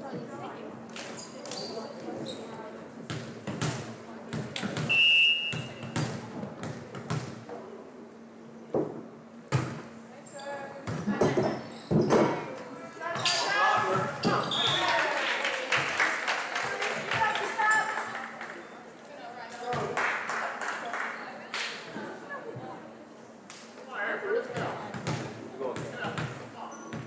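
A volleyball is struck with sharp slaps in a large echoing gym.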